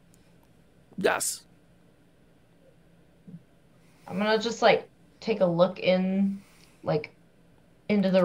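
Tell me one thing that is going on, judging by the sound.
A woman talks animatedly over an online call.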